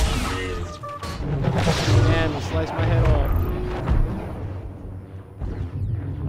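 Lightsabers hum and swing with a buzzing whoosh.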